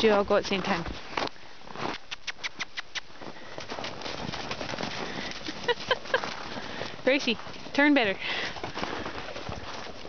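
Horses' hooves thud and crunch across packed snow.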